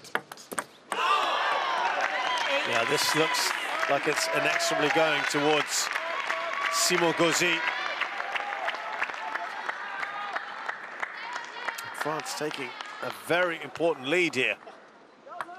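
A crowd cheers loudly in a large hall.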